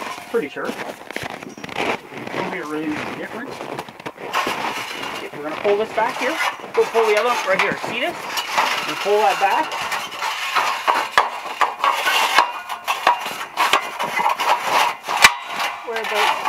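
Metal scaffold frames clank as they are handled.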